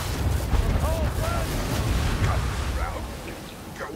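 A magic bolt crackles and whooshes as it fires.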